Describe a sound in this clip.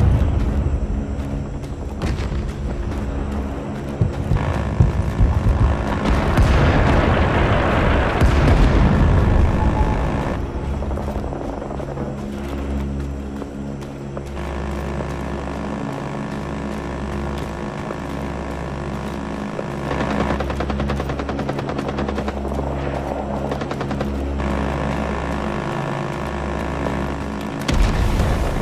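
Footsteps crunch over dirt and leaves.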